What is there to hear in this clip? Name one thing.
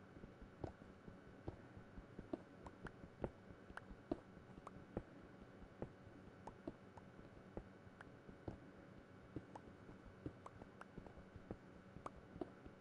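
A pickaxe strikes stone blocks in quick, repeated knocks.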